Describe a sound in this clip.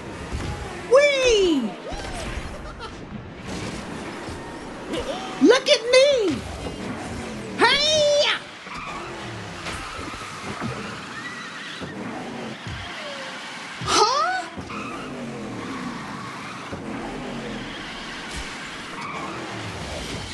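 Racing kart engines roar and whine at speed.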